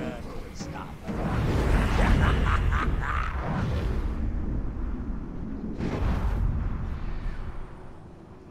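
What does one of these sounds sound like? Video game combat sounds clash and whoosh.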